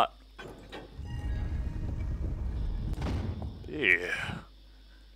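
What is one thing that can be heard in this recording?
A heavy stone slab grinds and rumbles as it slides open.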